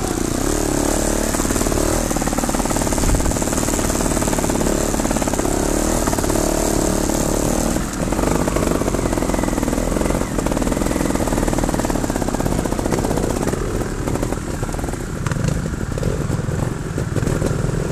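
A motorcycle engine revs and buzzes up close.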